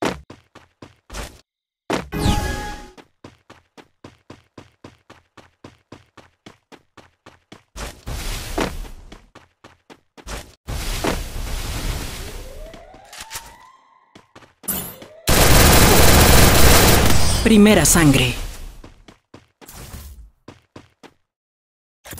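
Quick footsteps patter on stone paving.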